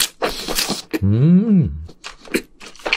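A young man hums with pleasure close to a microphone.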